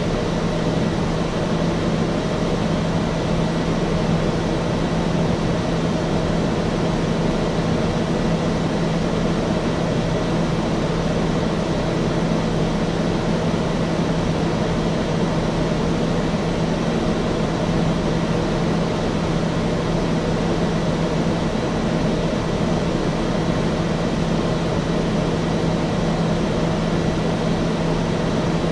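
Air roars past the aircraft's cabin.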